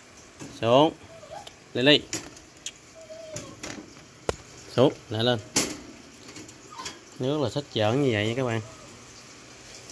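Wire cage bars rattle and clink as a hand reaches inside.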